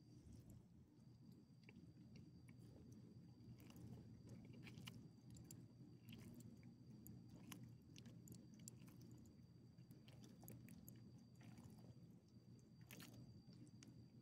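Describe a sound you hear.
A small dog licks and laps at a hand.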